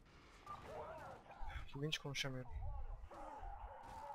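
Gunshots and impacts crack in a fight.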